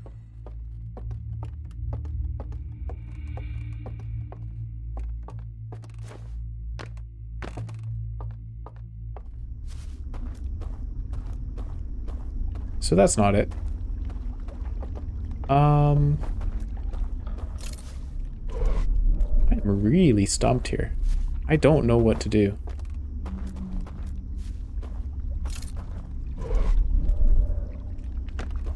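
Footsteps thud steadily across wooden floorboards.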